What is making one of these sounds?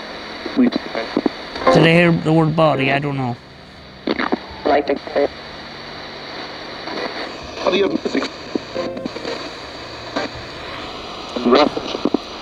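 A middle-aged man talks calmly and closely into a microphone.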